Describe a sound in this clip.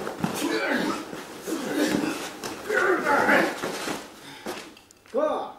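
Men grunt and shout loudly as they fight.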